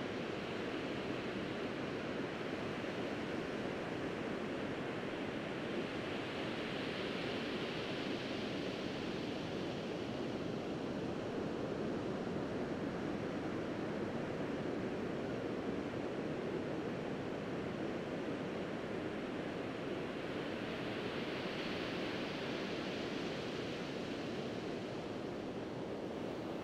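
Waves wash onto a shore with a steady rushing that slowly swells and eases.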